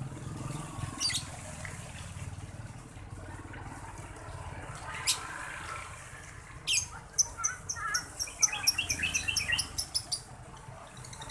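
A lovebird chirps and chatters in shrill bursts.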